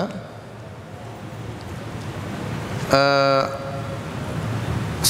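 A man speaks calmly and slowly into a microphone.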